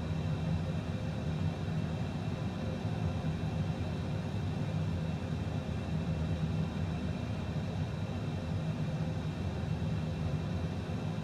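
Aircraft engines hum steadily at idle.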